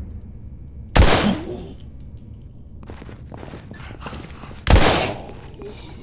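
A pistol fires loud, echoing shots.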